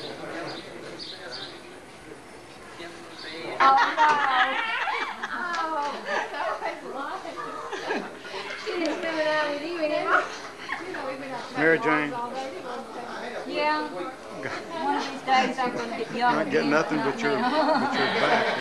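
Several women talk and laugh together nearby.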